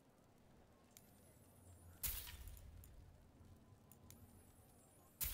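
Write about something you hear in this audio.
Short electronic menu clicks sound as a selection moves.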